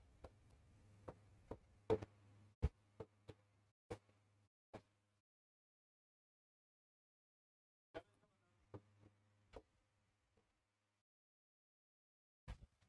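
A marker taps and scratches on a board.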